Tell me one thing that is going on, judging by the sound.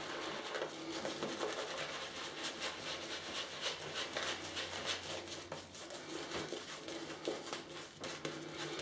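A razor scrapes through thick shaving foam on stubble.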